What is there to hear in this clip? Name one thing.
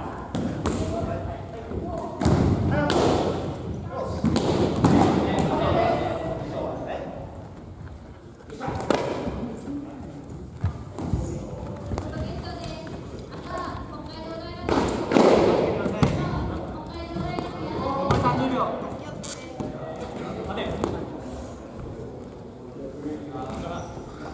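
Young people shout and cheer in a large echoing hall.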